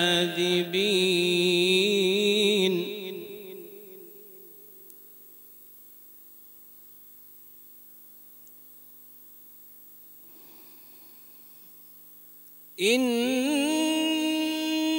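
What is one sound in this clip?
A man recites in a long, melodic chanting voice through a microphone, with an echo.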